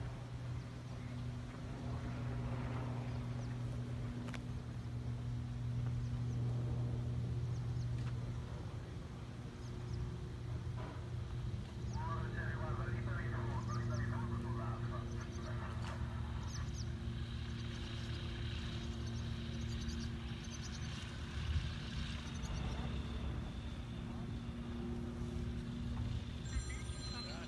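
A small propeller plane's engine drones steadily as it taxis past.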